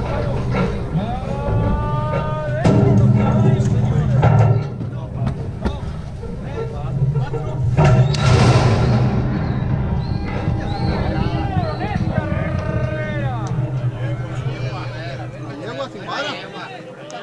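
Men shout and call out nearby outdoors.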